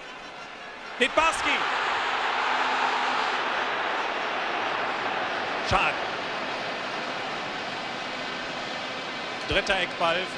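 A large stadium crowd roars loudly and then slowly dies down.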